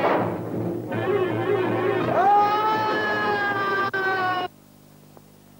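A crowd of men shouts loudly nearby.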